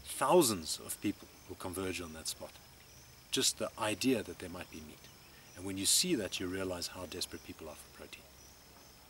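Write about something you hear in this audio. A middle-aged man speaks calmly and thoughtfully, close by.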